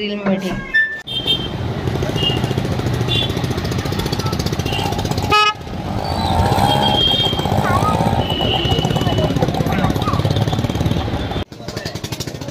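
Auto-rickshaw and motorbike engines rumble in busy street traffic.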